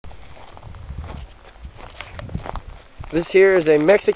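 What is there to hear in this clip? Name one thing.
Footsteps crunch through dry brush and grass.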